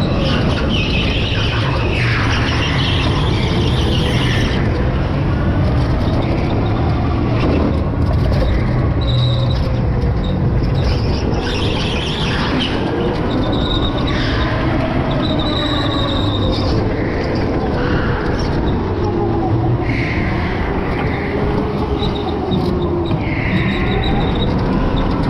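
Wind rushes loudly past the driver.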